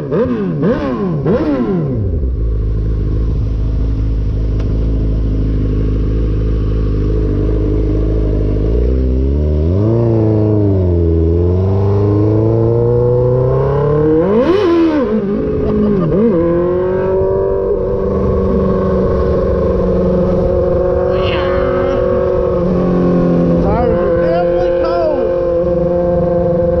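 A motorcycle engine revs up and down as it rides along.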